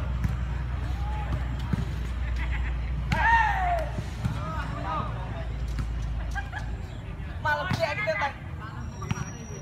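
Young men shout and call out outdoors during a game.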